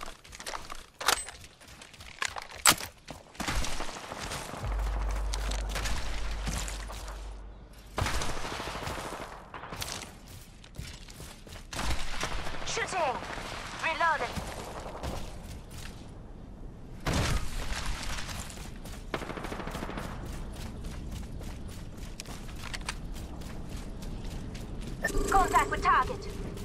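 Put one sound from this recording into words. Quick footsteps run over dirt and gravel.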